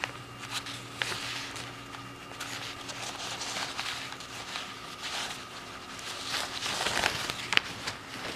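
A sheet of paper peels away with a soft tearing crackle.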